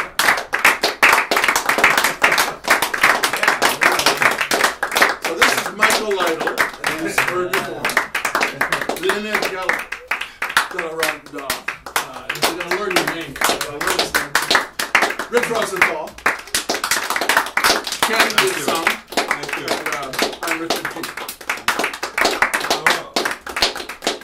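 Several men laugh and talk loudly close by.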